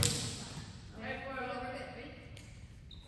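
A young man calls out across the hall.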